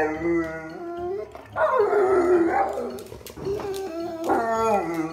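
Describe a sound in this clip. Two dogs howl loudly close by, in long wavering cries.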